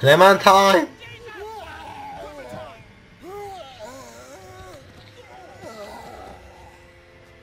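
A man groans and grunts in pain.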